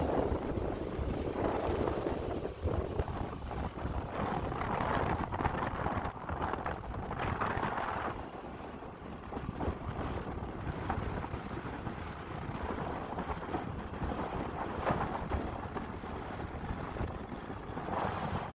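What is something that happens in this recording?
A vehicle drives along a road with a steady rumble.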